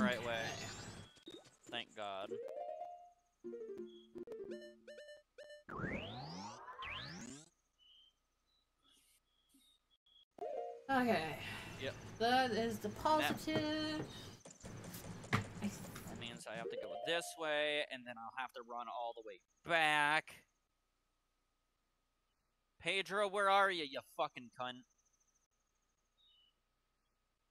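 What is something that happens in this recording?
Short electronic chimes and blips sound from a video game menu.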